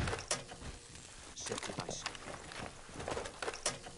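Wooden boards splinter and crack as a wall breaks apart.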